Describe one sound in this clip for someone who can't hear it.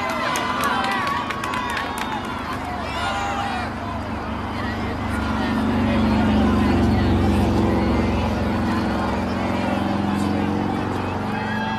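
Young women shout in the distance across an open field.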